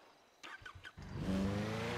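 A motorcycle engine starts and idles.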